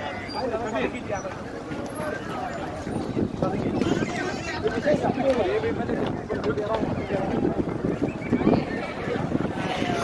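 Sheep bleat close by.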